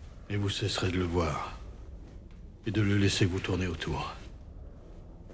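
A middle-aged man speaks calmly up close.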